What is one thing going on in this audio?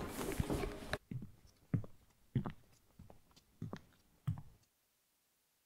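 Footsteps shuffle out of a lift.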